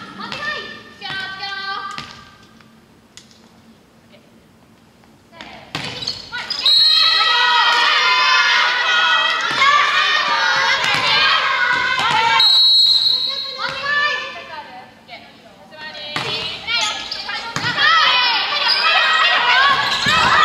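A volleyball thumps off a player's arms.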